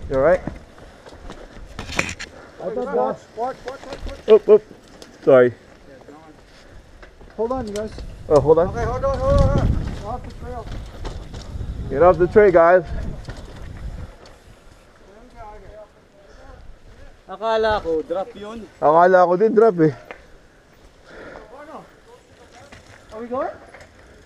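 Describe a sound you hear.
Bicycle tyres rumble and crunch over a dirt trail.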